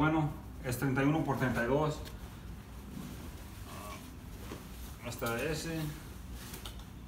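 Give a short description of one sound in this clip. A man talks nearby in a casual voice.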